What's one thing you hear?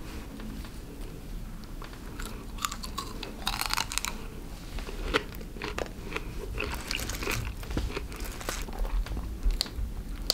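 A knife cuts into a pineapple.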